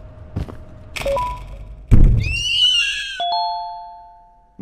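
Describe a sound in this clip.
Electronic beeps sound from a machine.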